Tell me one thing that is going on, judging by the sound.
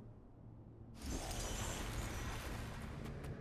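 A magical spell bursts with a bright shimmering whoosh.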